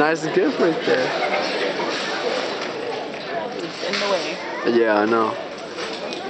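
Men and women in an audience talk with animation close by.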